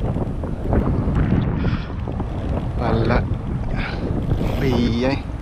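Small waves lap and splash nearby.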